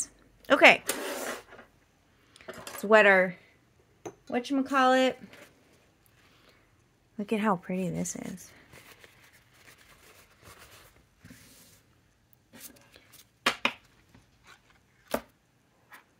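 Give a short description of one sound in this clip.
Stiff paper cards rustle and tap on a table.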